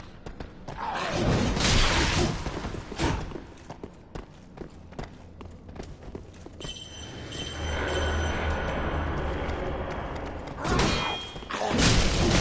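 A sword swings and strikes with a heavy thud.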